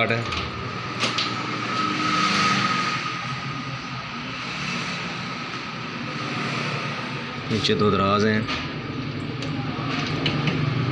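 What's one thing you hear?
Keys jingle and click in a cabinet lock.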